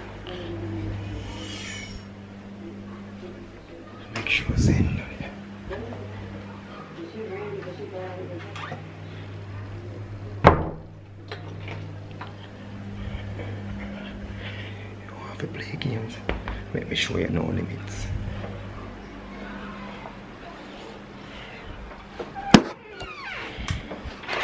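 A young man talks casually close to a phone microphone.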